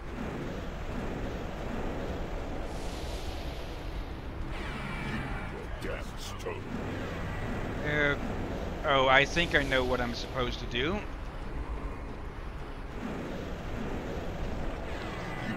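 A young man talks close to a microphone with animation.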